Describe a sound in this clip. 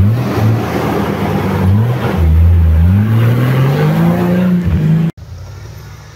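An off-road vehicle's engine revs hard, rising and falling in pitch.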